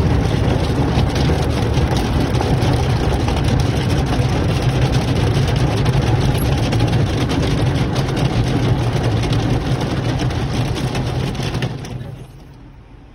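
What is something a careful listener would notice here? Rotating brushes scrub against a car's body.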